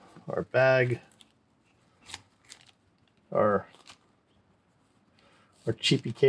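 A cable rustles and clicks as it is unwrapped.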